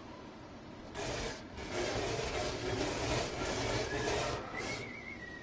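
A cat scratches and bangs at a metal door.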